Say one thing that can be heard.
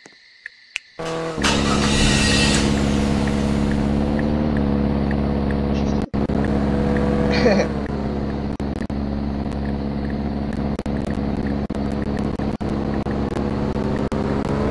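A car engine starts and idles with a steady low hum.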